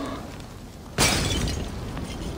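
A person lands with a heavy thud.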